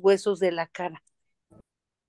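A middle-aged woman speaks briefly over an online call.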